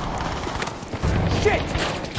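Gunshots ring out nearby.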